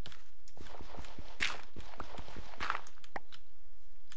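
Stone blocks are chipped away with short, dry scraping knocks.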